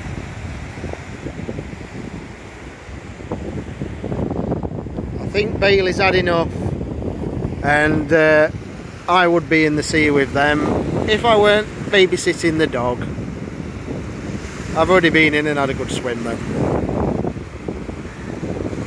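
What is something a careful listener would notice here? Waves wash onto the shore with a steady rushing.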